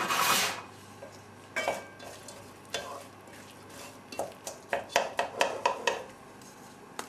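A wooden spatula scrapes and knocks against the bottom of a metal pot.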